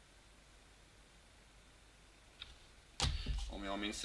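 Trading cards shuffle and slide between fingers.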